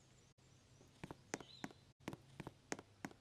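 A game character's footsteps patter quickly.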